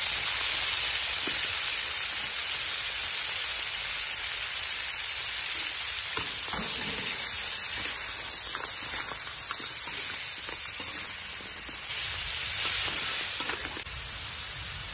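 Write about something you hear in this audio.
Seafood sizzles loudly in a hot wok.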